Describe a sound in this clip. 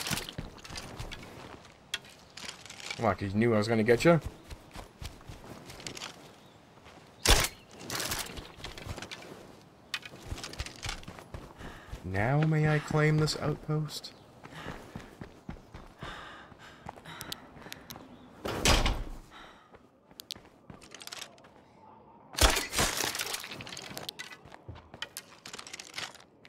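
Footsteps move softly over grass and gravel.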